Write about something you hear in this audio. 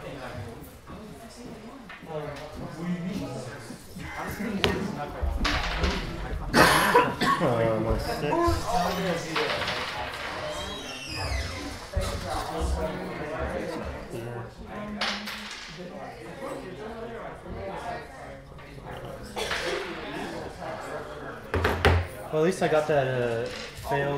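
Small plastic pieces click and tap on a table.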